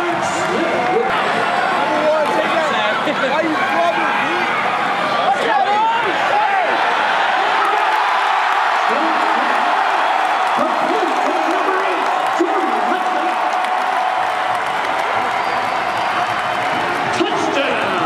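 A large crowd cheers and roars loudly outdoors in a stadium.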